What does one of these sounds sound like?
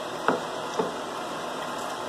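A plate clinks down onto a hard counter.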